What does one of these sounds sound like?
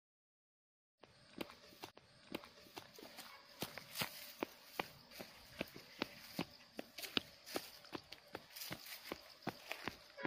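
Shoes tap on a paved path with quick footsteps.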